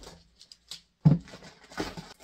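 A box thumps down onto a table.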